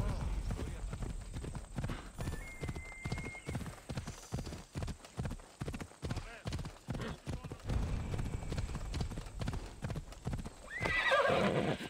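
A horse gallops with quick, heavy hoofbeats on a dirt path.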